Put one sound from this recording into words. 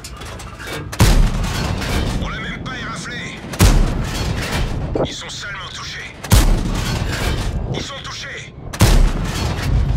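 A tank cannon fires with loud booming blasts, several times.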